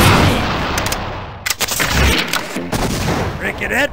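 An explosion booms and rumbles.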